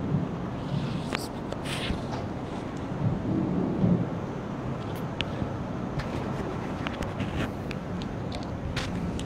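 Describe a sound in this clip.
Cloth rustles close by.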